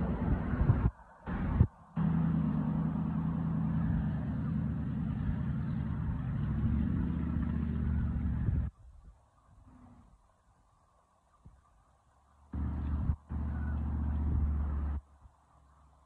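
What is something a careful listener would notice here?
Strong wind buffets the microphone in loud, rumbling gusts outdoors.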